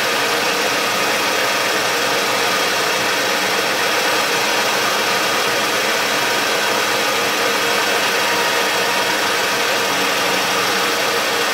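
An end mill whirs steadily as it cuts into metal.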